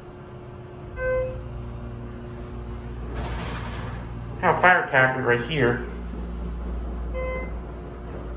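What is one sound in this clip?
An elevator chime dings.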